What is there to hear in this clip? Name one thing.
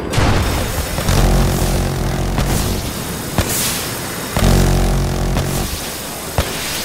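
A rotary machine gun fires in rapid, buzzing bursts.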